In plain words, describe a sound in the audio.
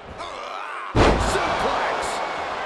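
Heavy thuds ring out as wrestlers slam onto a mat.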